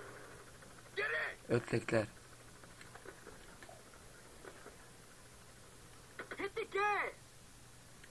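Another man answers briefly.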